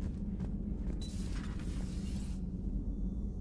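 A heavy door slides open with a hiss.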